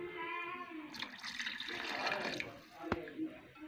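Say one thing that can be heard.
Water pours into a pot of simmering sauce.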